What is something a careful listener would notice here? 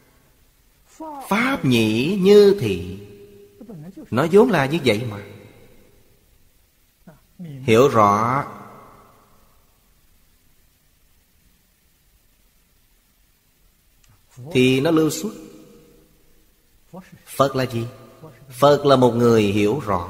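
An elderly man speaks calmly and close to a microphone, in unhurried phrases with long pauses.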